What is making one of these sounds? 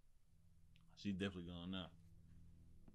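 A man speaks briefly through a headset microphone.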